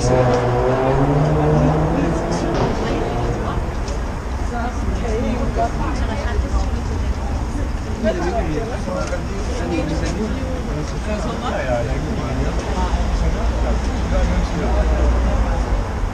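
A crowd of passersby chatters nearby on a busy street.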